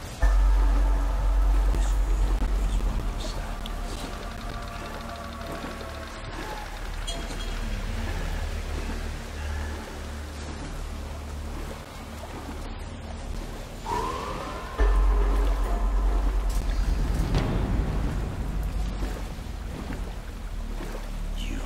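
Water splashes as a man wades through a river.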